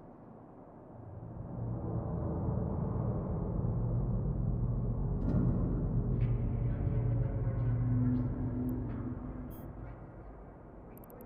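A spaceship's engines rumble deeply, then fade away.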